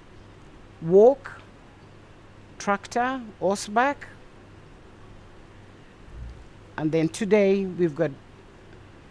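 An older woman speaks close by with feeling, in short bursts with pauses.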